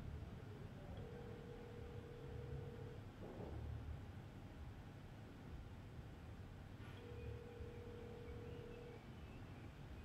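A phone ringback tone purrs at a steady pitch in short bursts.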